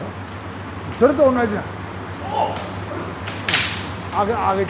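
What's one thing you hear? Bamboo swords clack together.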